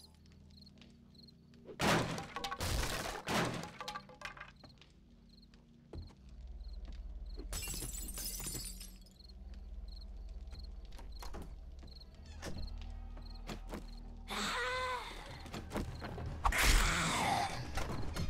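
Footsteps thud on creaky wooden floorboards.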